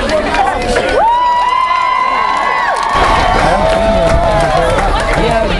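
A crowd whoops and whistles loudly.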